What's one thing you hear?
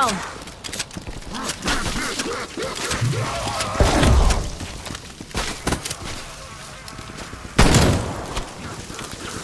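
A rifle fires loud shots in short bursts.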